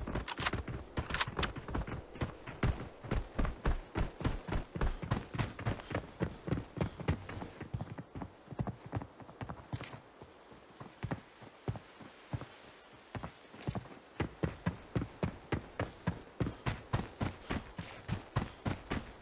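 Quick running footsteps thud on hard ground.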